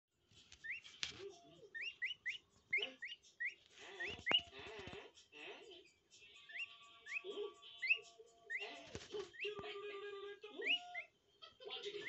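A duckling peeps in short, rising chirps close by.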